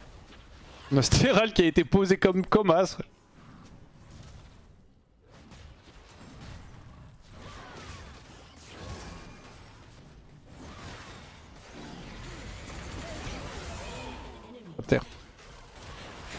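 Game spells and attacks crackle and whoosh during a fight.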